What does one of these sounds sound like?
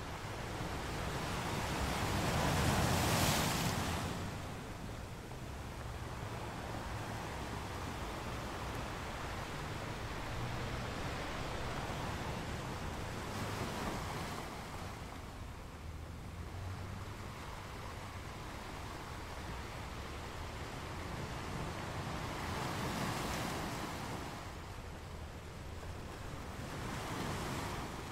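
Ocean waves crash and roar against rocks.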